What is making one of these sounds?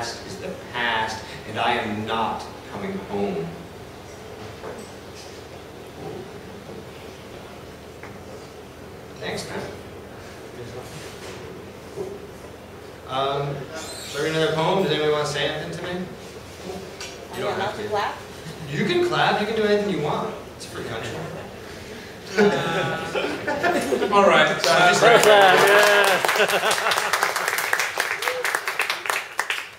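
A man speaks calmly and slowly into a microphone nearby.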